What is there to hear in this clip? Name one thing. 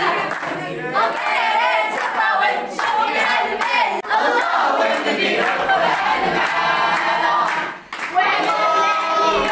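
A group of young men and women sing loudly together.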